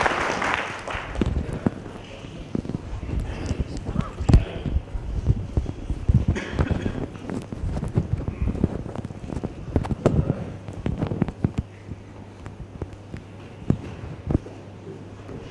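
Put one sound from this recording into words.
A microphone thumps and rustles as it is handled.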